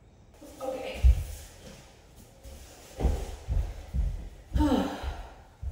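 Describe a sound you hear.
Bodies thump onto a wooden floor.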